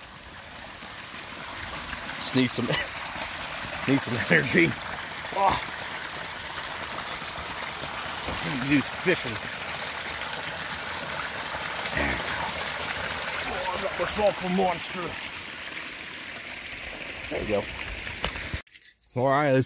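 Water pours from a pipe and splashes into a stream.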